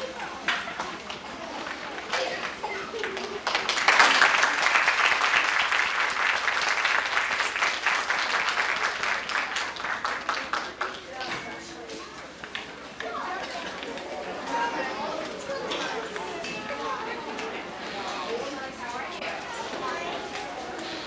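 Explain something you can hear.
Children tap small xylophones with mallets.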